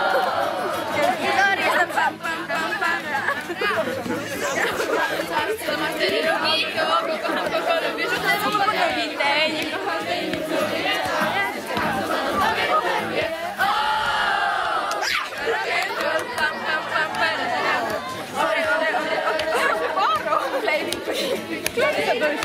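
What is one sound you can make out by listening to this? A crowd of children and teenagers chatters and calls out outdoors.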